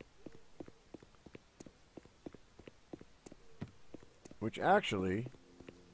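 Footsteps crunch steadily over cobblestones.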